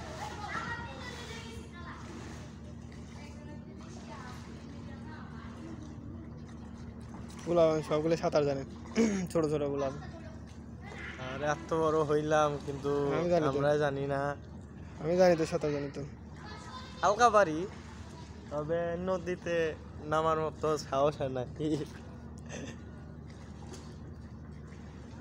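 Wooden paddles splash in the water.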